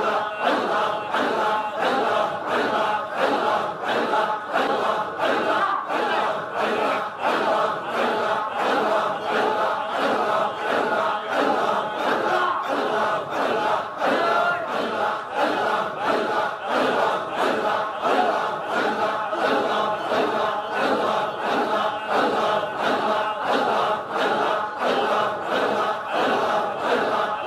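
A man chants rhythmically into a microphone, heard through loudspeakers.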